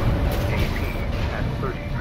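An energy blade swings with a sharp whoosh.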